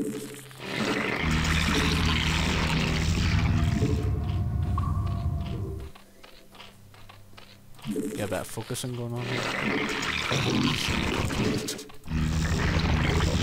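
Alien creatures chitter and growl.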